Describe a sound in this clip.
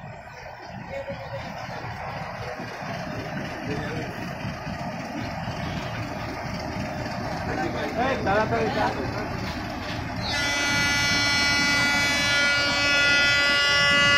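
A diesel locomotive rumbles past.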